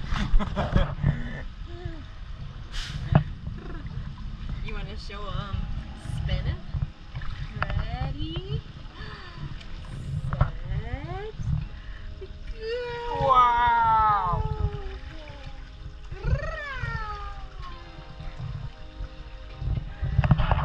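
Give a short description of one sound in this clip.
Water splashes and sloshes in a pool.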